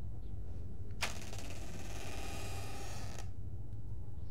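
A heavy door swings open with a long scrape.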